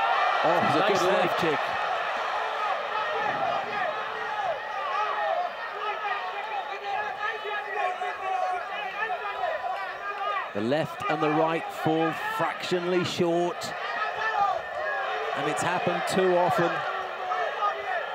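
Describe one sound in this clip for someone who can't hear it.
A crowd cheers and shouts in a large arena.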